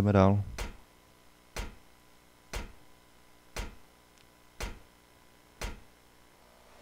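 Footsteps climb metal stairs with slow, heavy clanks.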